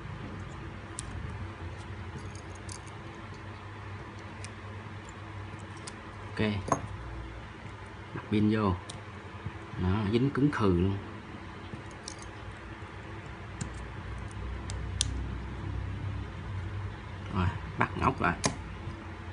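Small metal tools click and tick against a phone's parts.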